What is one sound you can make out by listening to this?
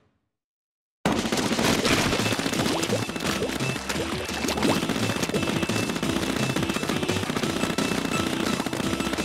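Ink guns fire in rapid bursts and splatter.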